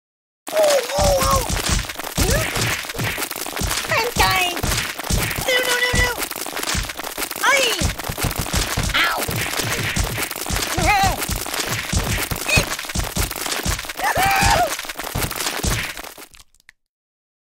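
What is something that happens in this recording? Heavy thuds land again and again in quick succession.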